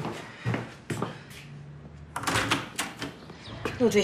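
A door creaks and rattles as it swings open.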